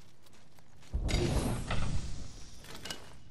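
A metal supply bin bangs open with a loud whoosh.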